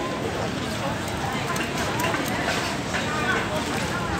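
A shopping trolley's wheels rattle over paving.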